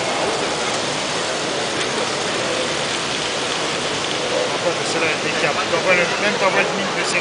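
A busy indoor hall hums with steady crowd noise.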